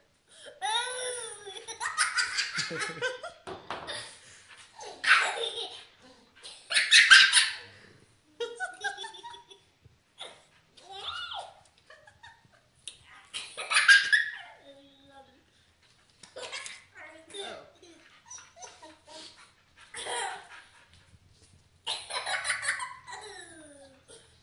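A young boy laughs loudly and giggles close by.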